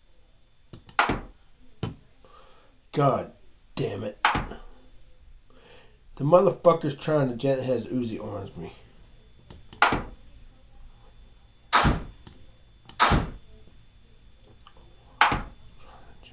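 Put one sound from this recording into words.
Short wooden clicks sound as chess pieces are moved.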